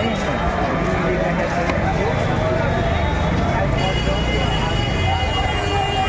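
Motorbike engines rumble slowly through a crowd.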